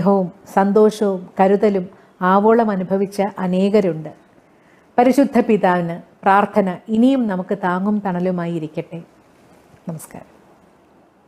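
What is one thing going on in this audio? A middle-aged woman speaks warmly and calmly close to a microphone.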